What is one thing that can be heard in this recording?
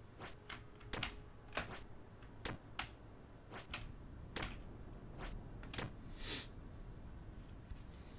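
Short video game sound effects pop and click repeatedly.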